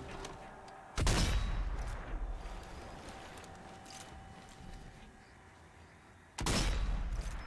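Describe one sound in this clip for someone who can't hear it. A bolt-action sniper rifle fires with a booming echo in an enclosed tunnel.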